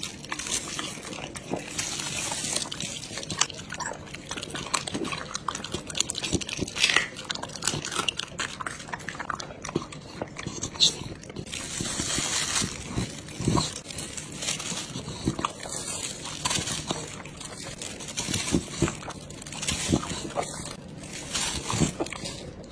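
A dog chews and smacks wet raw meat up close.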